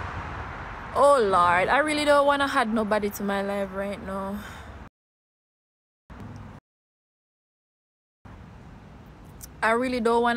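A young woman talks casually and close to a phone microphone.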